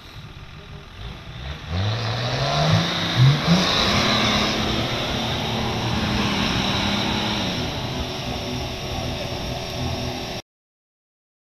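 An off-road vehicle's engine revs hard as it churns through deep mud.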